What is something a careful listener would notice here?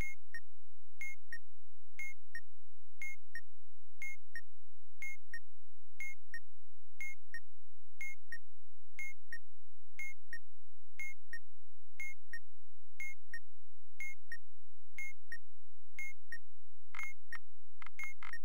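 A bomb timer beeps twice every second, steadily and evenly.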